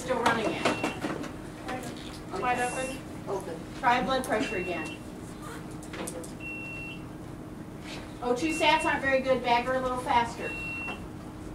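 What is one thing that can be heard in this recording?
Young women talk nearby in calm voices.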